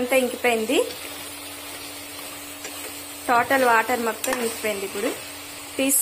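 A spoon stirs and scrapes food in a metal pot.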